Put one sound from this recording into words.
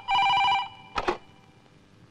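A telephone handset clicks as it is picked up.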